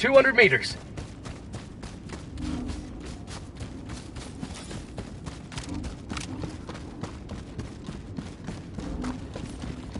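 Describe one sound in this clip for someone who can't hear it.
Footsteps crunch quickly over rough ground.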